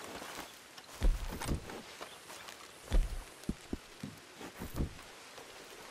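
Saddle gear on a horse thumps and rattles as it is handled.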